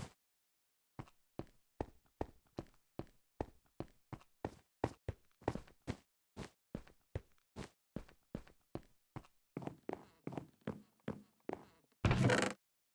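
Footsteps tap quickly and steadily on stone.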